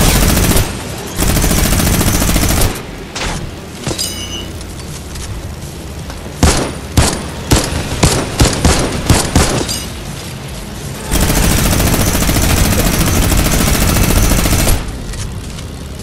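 A small propeller plane's engine drones loudly as it flies.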